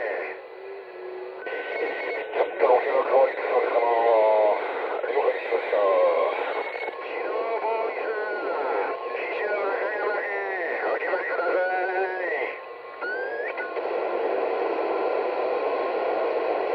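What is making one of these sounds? Static hisses from a radio receiver.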